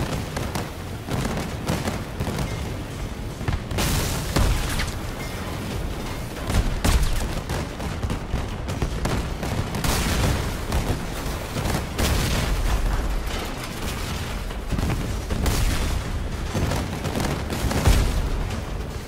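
Explosions boom and crackle repeatedly.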